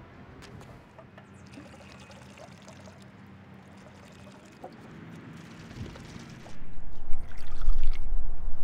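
Liquid pours and gurgles through a funnel.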